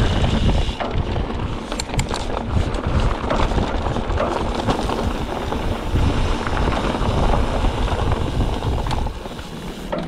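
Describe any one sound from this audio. Wind rumbles loudly past close by.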